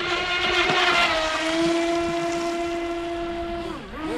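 Water sprays and splashes close by as the boat speeds past.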